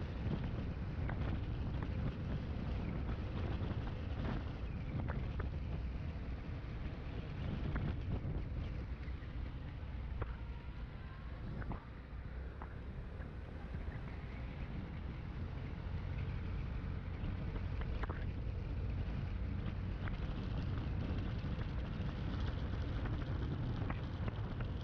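Small wheels roll and rattle over pavement.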